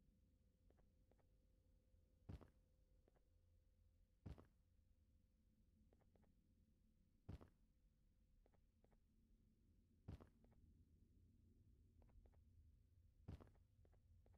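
Light footsteps tap softly between the landings.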